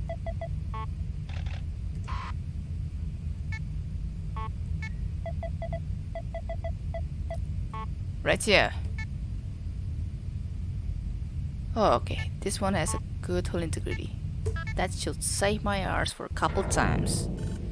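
A low steady electronic hum drones throughout.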